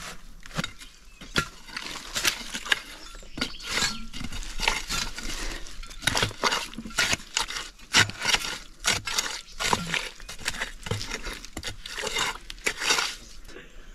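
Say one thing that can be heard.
A stick scrapes and digs into soil.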